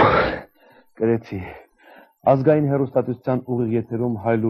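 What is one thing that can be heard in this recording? A man speaks calmly into a microphone, reading out.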